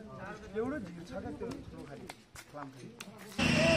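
Men talk with each other close by, outdoors.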